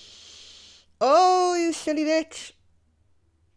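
A young woman groans and laughs into a close microphone.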